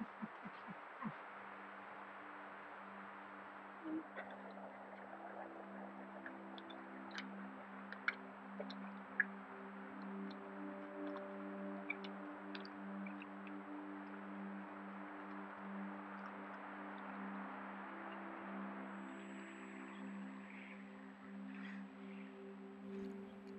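A small stream trickles over rocks.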